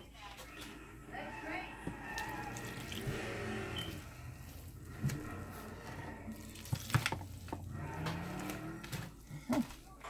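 Water pours in a thin stream into a bowl.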